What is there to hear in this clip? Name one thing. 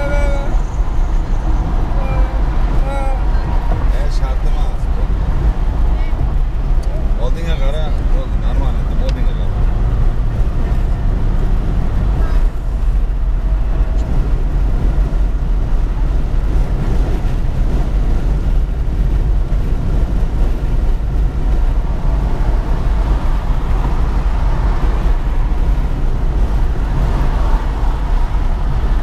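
Road noise rumbles steadily inside a car driving on a highway.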